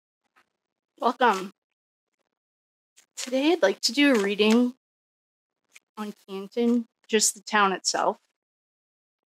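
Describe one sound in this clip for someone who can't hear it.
A woman speaks with animation into a close microphone.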